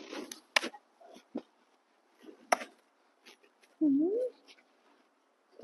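A young macaque smacks its lips in rapid clicks.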